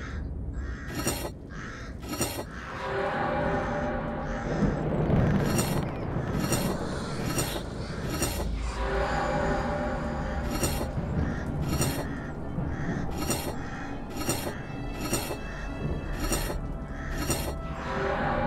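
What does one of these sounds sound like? Stone discs click sharply as they turn.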